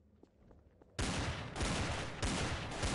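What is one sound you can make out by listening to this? Gunshots fire in a rapid, sustained burst.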